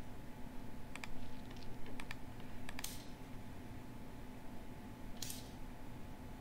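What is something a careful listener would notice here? Wooden game pieces click sharply onto a board a few times.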